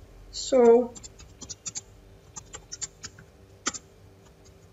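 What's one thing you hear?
Keyboard keys click in quick taps.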